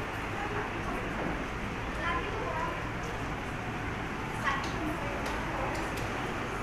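Several women chatter and call out in a busy echoing hall.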